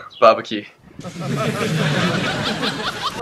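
A young man laughs heartily.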